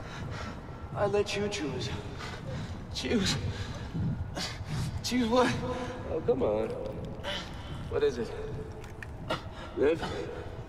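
A man speaks quietly through a microphone.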